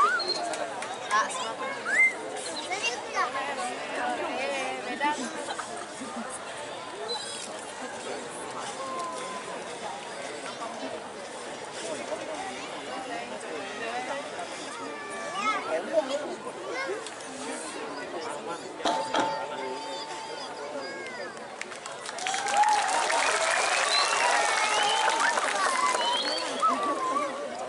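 A gamelan orchestra plays ringing metal percussion on a stage.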